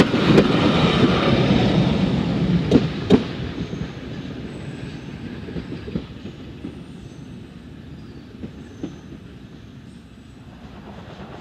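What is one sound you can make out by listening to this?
A train rumbles along the tracks, loud at first and slowly quieting.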